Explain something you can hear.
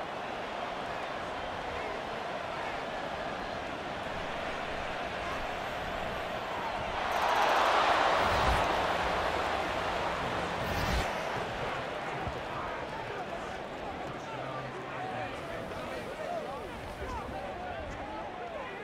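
A large stadium crowd cheers and swells into a loud roar.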